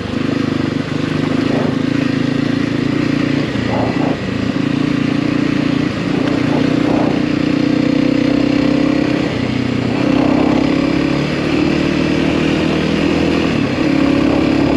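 A motorcycle engine drones steadily, its pitch rising and falling with the throttle.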